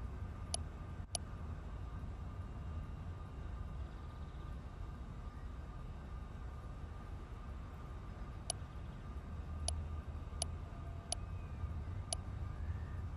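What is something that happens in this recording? Short high clicks sound as menu choices change.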